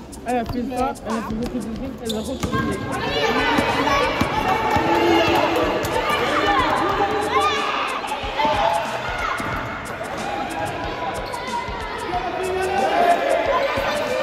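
Young girls shout and call out in a large echoing gym.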